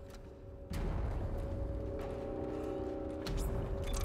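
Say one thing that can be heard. Heavy metal footsteps clank along a corridor.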